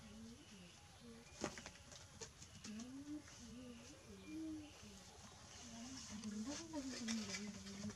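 A woman talks softly and close by.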